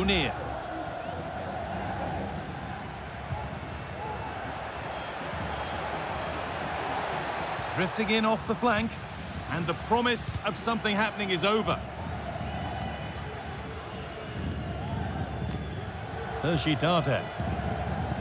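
A large stadium crowd cheers and murmurs steadily in the distance.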